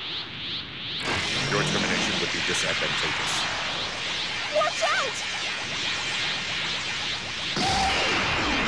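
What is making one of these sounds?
An energy blast charges up with a rising hum.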